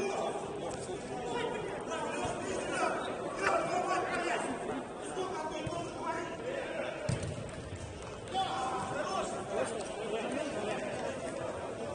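Men shout to each other in an echoing indoor hall.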